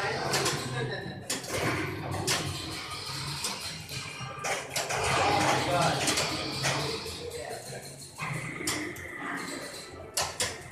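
A pinball machine plays electronic music and sound effects.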